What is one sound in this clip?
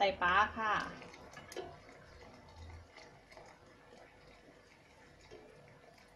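Liquid pours steadily into a pot.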